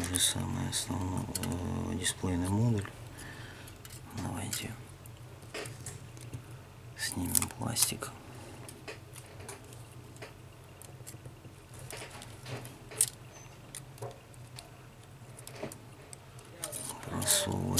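Fingers tap and scrape on thin plastic and metal parts close by.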